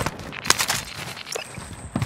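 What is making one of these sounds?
A video game character climbs a ladder with clanking steps.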